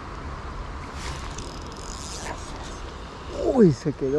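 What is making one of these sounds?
A fishing reel whirs and clicks as it is wound.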